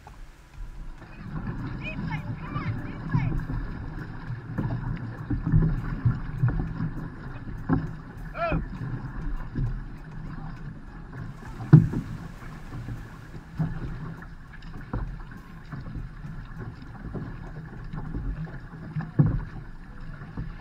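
Water rushes against a canoe's hull close by.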